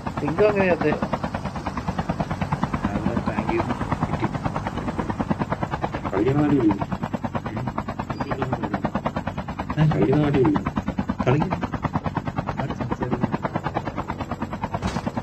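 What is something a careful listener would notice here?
A helicopter's rotor chops loudly and steadily.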